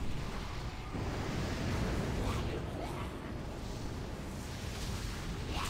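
Game spell effects crackle and whoosh during a battle.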